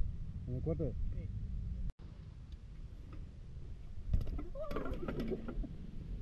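Bike tyres roll and clatter on concrete.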